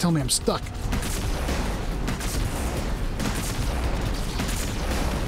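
Energy weapons fire in quick zapping bursts.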